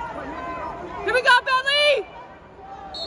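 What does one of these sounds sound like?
A man shouts loudly from the crowd.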